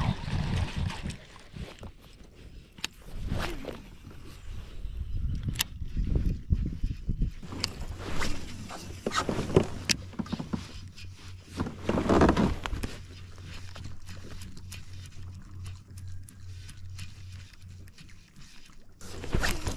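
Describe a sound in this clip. A fishing reel clicks and whirs as a man winds in line.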